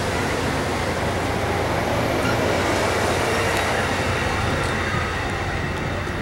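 A passenger train rolls past close by with a loud, steady rumble.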